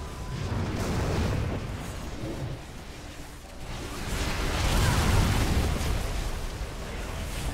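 Magic spells and weapon strikes crash and boom in a fierce game battle.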